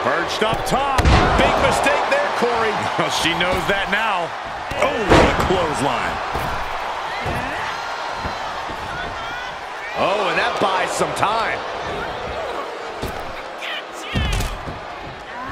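A body slams heavily onto the wrestling mat.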